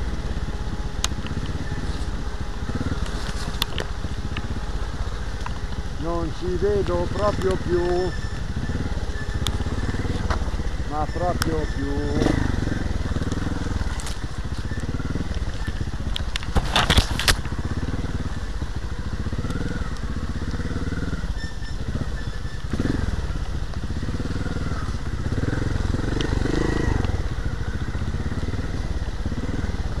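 The motorbike rattles and clatters over rough ground.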